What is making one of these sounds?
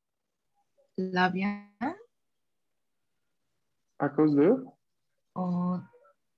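A woman speaks calmly over an online call, in short phrases.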